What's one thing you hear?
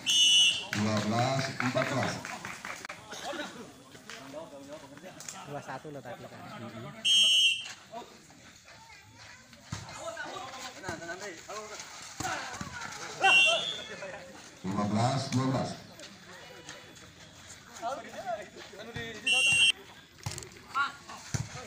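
A crowd of onlookers chatters and cheers.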